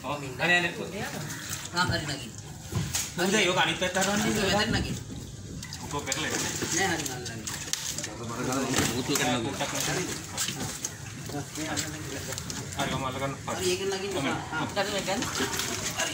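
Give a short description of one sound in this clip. Several men talk loudly nearby.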